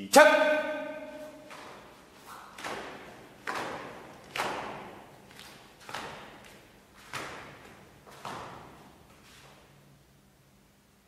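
A uniform snaps sharply with each quick strike of a martial artist.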